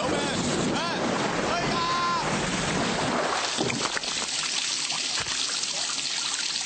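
Water bubbles and splashes in a hot tub.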